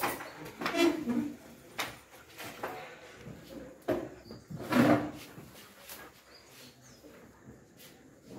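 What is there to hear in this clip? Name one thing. Objects knock and rustle as they are moved about.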